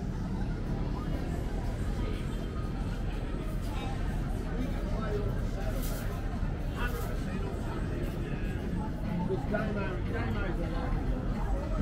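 A crowd of people chat and murmur outdoors nearby.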